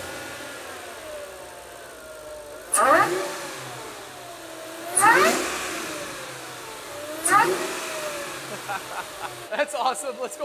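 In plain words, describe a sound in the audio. A car engine idles and revs sharply several times.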